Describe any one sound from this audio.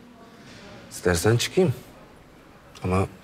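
A younger man speaks in a low, firm voice.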